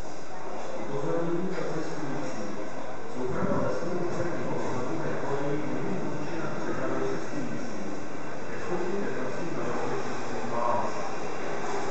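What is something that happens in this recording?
A subway train rumbles into an echoing underground station and slows to a stop.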